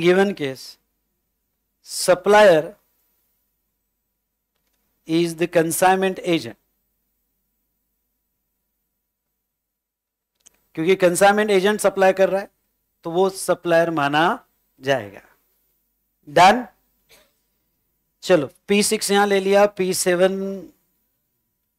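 A middle-aged man lectures calmly into a close microphone, in short phrases with pauses.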